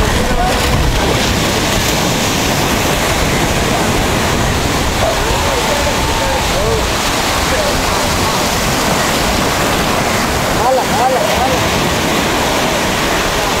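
Waves wash steadily onto the shore.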